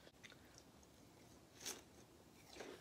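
A young woman bites into soft fruit.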